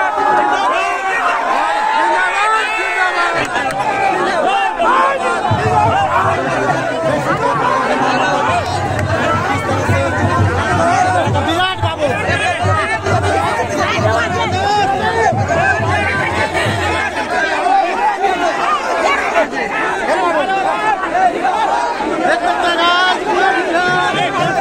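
A large crowd shouts and cheers loudly outdoors.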